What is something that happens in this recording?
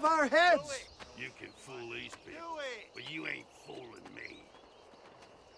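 A second man answers gruffly.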